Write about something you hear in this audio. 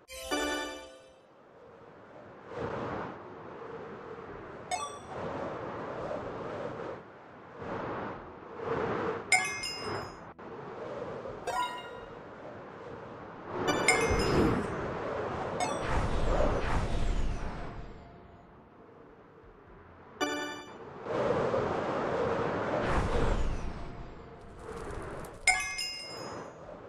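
A bright game chime rings out several times.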